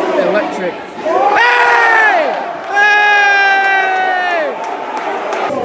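A man close by shouts and sings along with the crowd.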